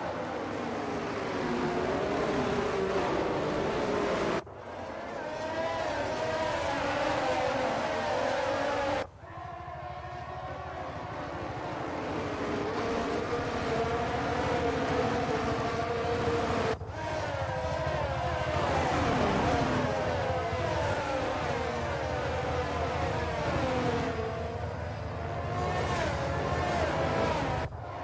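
Tyres hiss through spray on a wet track.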